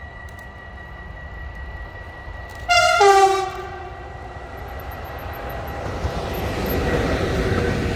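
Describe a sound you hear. A freight train approaches and rumbles past, growing louder.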